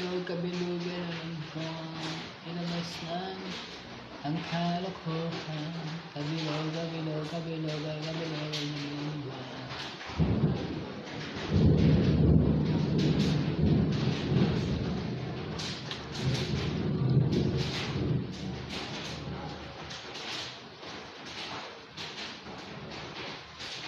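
A young man speaks with animation close to the microphone.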